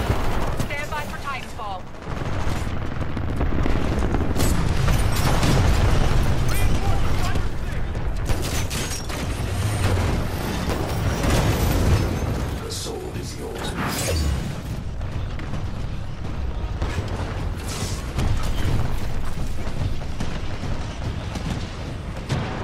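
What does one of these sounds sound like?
Gunfire crackles and bursts in quick volleys.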